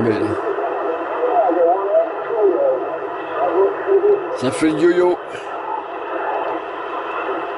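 A radio receiver hisses with crackling static.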